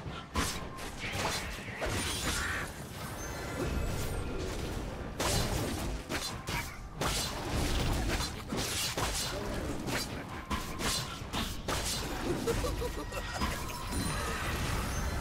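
Video game battle sound effects clash, with spell hits and impacts.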